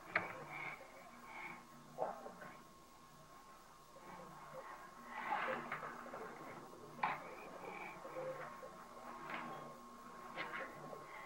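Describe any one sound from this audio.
A crayon scratches on paper.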